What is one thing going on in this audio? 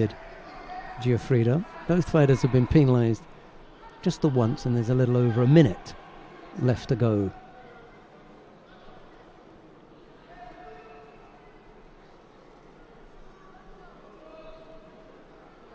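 A crowd murmurs softly in a large indoor hall.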